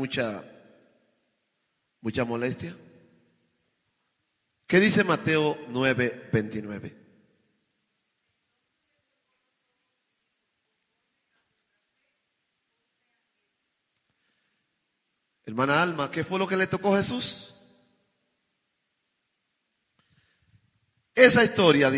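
A man preaches with passion into a microphone, in bursts with long pauses.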